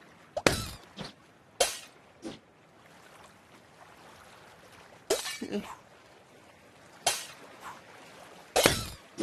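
Cartoon balloons pop in bursts of game sound effects.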